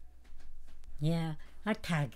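An elderly woman speaks softly, close by.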